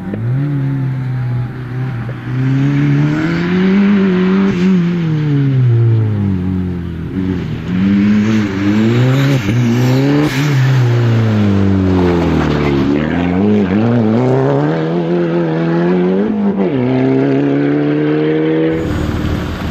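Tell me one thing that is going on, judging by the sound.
Gravel crunches and sprays under a car's tyres.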